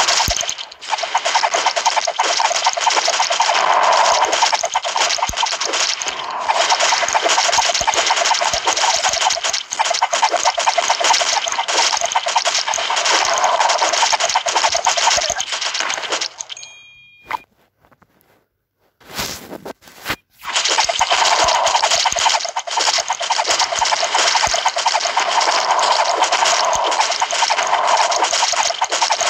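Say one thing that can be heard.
Mobile game sound effects of rapid arrow shots and hits play.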